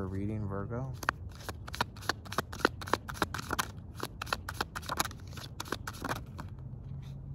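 Playing cards riffle and click as they are shuffled.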